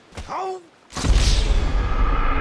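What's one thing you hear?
A body thuds hard onto rock.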